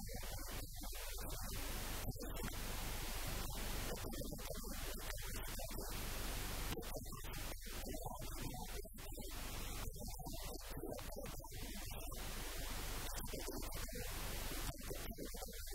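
A middle-aged man asks questions into a close microphone.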